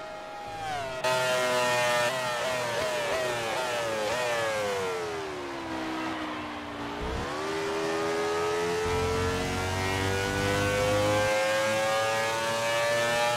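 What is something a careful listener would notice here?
A racing car engine roars up close, falling in pitch as it slows and then rising steadily as it speeds up again.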